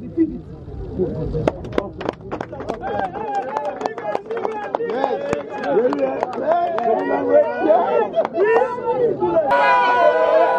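A crowd of young men chants and shouts loudly outdoors.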